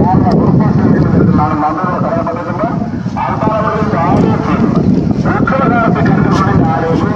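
A crowd of men and women talk and call out nearby outdoors.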